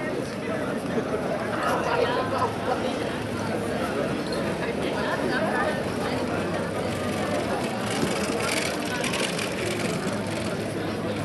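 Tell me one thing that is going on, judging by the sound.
A large crowd of men and women chatters and murmurs outdoors.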